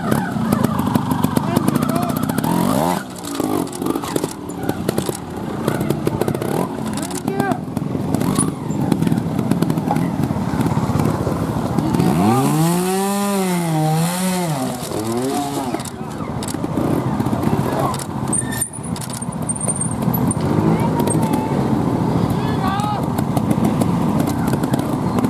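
A small motorcycle engine revs hard in sharp bursts, rising and falling in pitch.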